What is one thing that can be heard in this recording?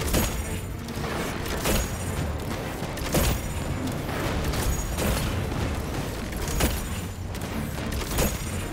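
Energy explosions crackle and burst.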